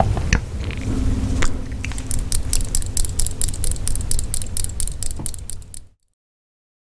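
A young woman speaks softly and cheerfully close to a microphone.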